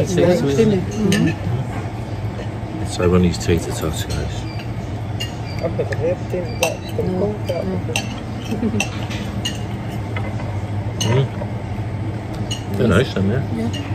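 A middle-aged man talks casually, close by.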